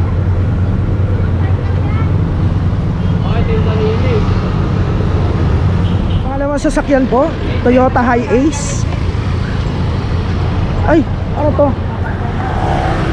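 Traffic rumbles steadily outdoors on a busy street.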